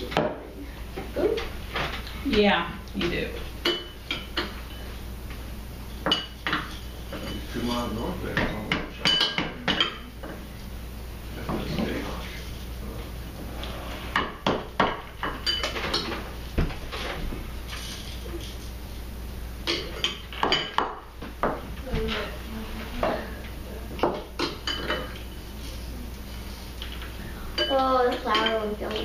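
A spoon clinks against a bowl.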